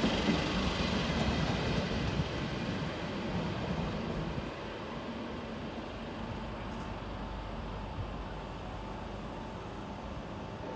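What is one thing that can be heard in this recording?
A train rumbles along the tracks and slowly fades into the distance.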